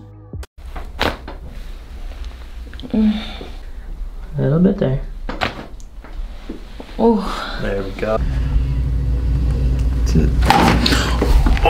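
A neck joint cracks sharply during an adjustment.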